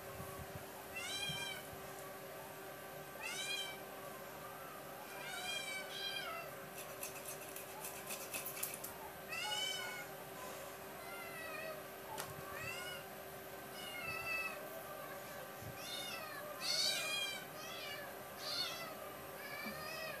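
A cat meows repeatedly.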